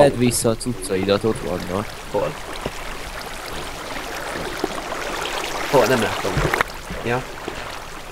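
Water rushes and splashes steadily.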